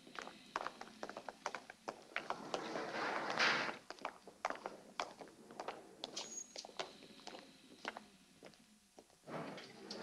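Footsteps click on a hard floor.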